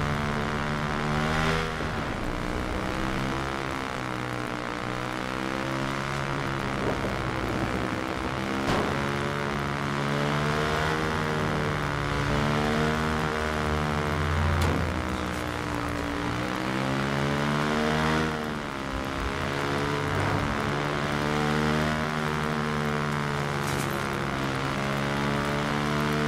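A motorcycle engine roars steadily, its pitch rising and falling as it speeds up and slows down.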